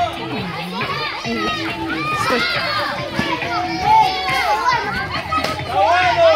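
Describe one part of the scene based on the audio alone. Many children shout and chatter excitedly nearby, outdoors.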